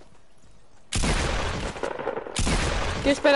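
Gunshots fire in rapid, loud bursts.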